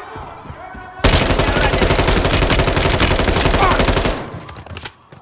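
Rapid automatic gunfire bursts loudly and then stops.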